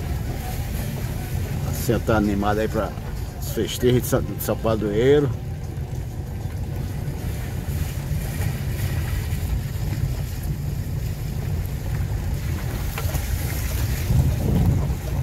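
Tyres hiss and splash on a wet road.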